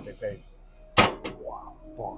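A metal gate clicks shut.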